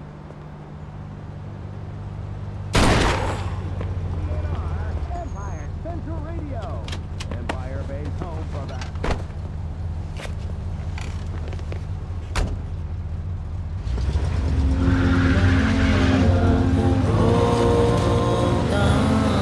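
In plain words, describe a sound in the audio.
A car engine hums and revs as a car drives off.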